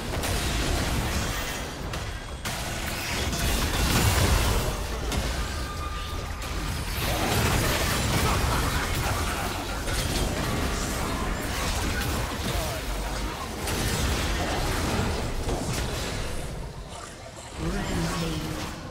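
Magic spells crackle and blast in a fast fight.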